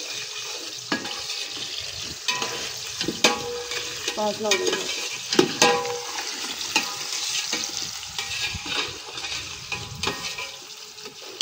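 A metal ladle scrapes and clinks against a cooking pot.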